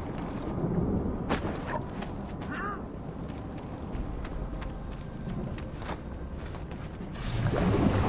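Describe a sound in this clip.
Footsteps tap on wooden planks.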